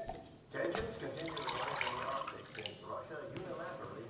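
Tea pours into a glass.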